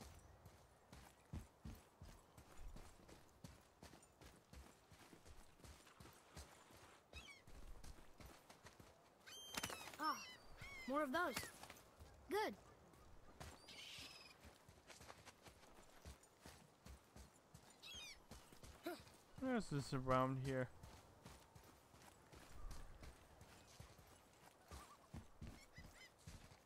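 Heavy footsteps thud on stone at a steady walking pace.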